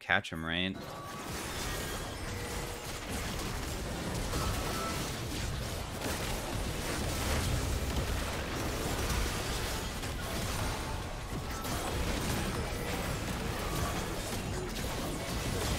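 Game spell effects crackle and boom in a busy fight.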